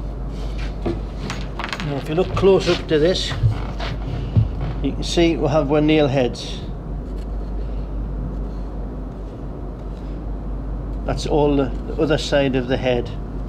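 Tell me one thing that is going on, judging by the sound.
A wooden board scrapes and knocks as it is picked up and handled.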